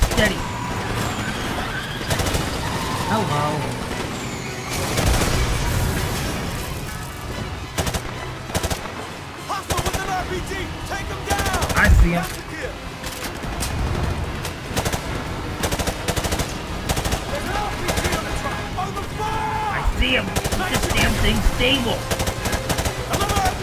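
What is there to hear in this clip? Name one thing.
A rifle fires rapid bursts of loud shots.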